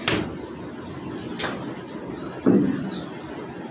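A plastic chair knocks and scrapes on the floor nearby.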